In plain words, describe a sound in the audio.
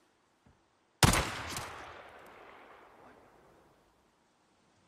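A rifle shot cracks and echoes across open country.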